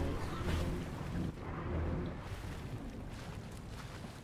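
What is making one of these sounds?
Water splashes as a game character swims.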